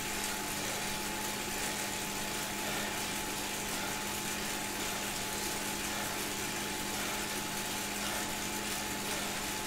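A bicycle on an indoor trainer whirs steadily as a rider pedals.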